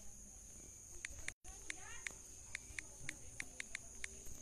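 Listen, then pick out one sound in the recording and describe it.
A phone's touch keyboard clicks as keys are tapped.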